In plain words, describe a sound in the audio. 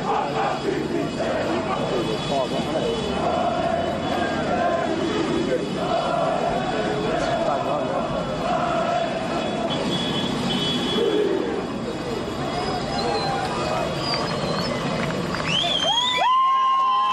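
A large group of men chant loudly together in rhythm.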